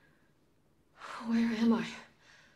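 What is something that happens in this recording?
A young woman speaks in a worried, breathless voice.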